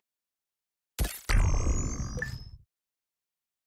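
A bright electronic flourish rings out and fades.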